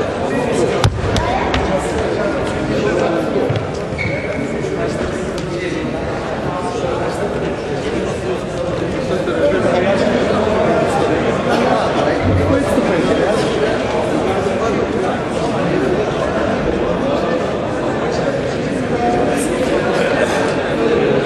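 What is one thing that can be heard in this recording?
Many voices murmur in a large echoing hall.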